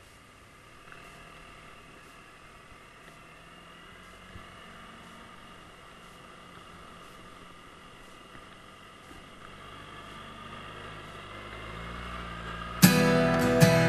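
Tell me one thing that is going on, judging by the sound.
A motorcycle engine revs up and rises in pitch as the motorcycle pulls away.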